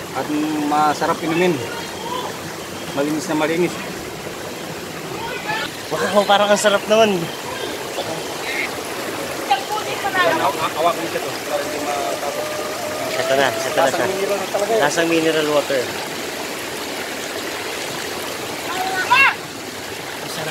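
A man talks with animation close by.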